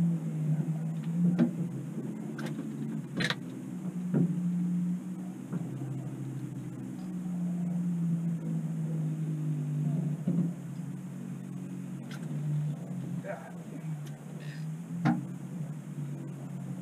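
A boat's outboard motor idles with a steady low hum.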